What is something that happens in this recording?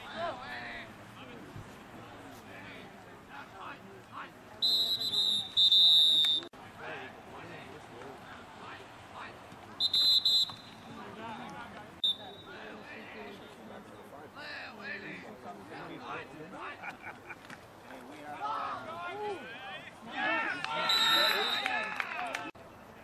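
A crowd of men and women shouts and talks outdoors at a distance.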